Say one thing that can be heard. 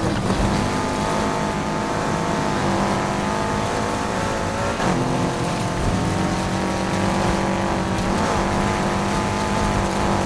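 Tyres skid and hiss over loose sand.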